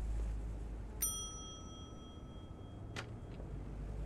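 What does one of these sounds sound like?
A desk bell rings once with a clear, ringing tone.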